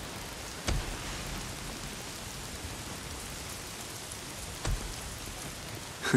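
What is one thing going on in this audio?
Footsteps thud on wet ground.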